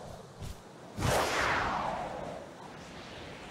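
A loud whoosh sweeps past and fades.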